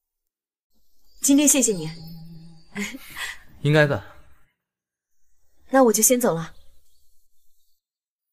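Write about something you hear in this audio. A young woman speaks brightly close by.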